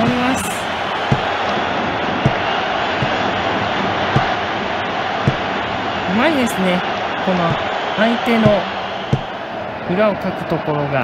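A crowd cheers steadily in a large stadium.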